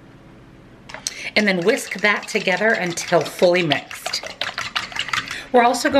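A fork whisks eggs, clinking against a metal bowl.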